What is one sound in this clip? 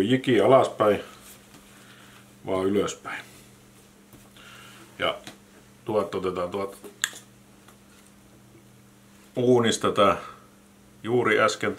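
A man speaks calmly and close up, in short phrases with pauses.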